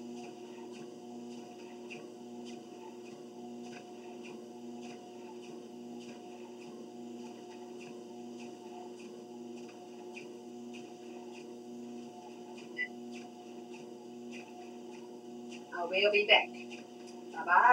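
A treadmill motor hums steadily.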